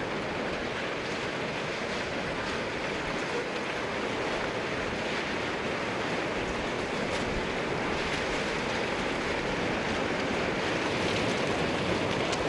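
Floodwater rushes and roars steadily through buildings.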